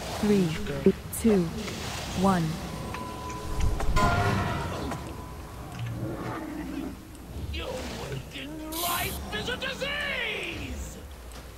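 Spell effects whoosh and crackle in a battle.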